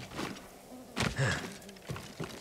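A heavy thump sounds as a body lands from a jump.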